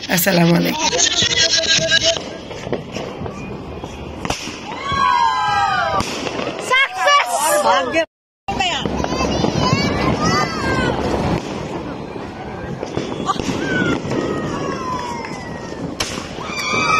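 Fireworks pop and crackle in the air.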